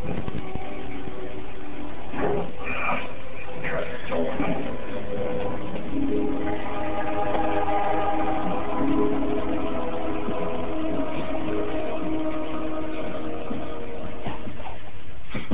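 A baby coos and babbles softly close by.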